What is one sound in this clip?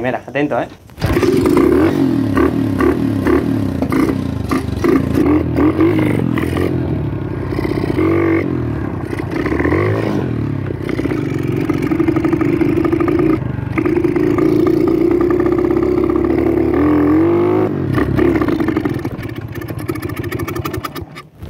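A small motorbike engine buzzes and revs up and down nearby.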